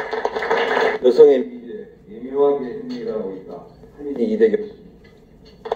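A man speaks calmly into a microphone over a loudspeaker, echoing in a large hall.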